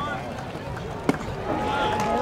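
A baseball smacks into a catcher's glove.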